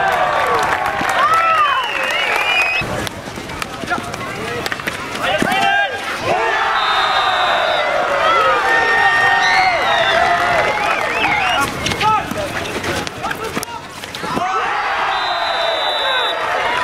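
Players shout to each other across the field.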